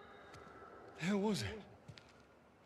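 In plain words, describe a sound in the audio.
A man asks a short question in a low voice.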